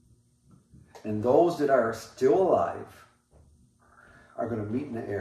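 An older man speaks calmly and clearly into a nearby microphone.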